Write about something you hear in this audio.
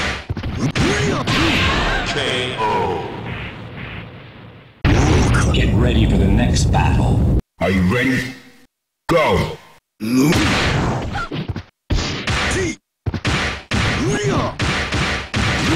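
A punch lands with a loud smack and a crackling burst.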